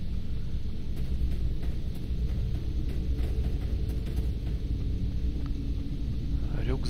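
Footsteps crunch on rough ground at a steady walking pace.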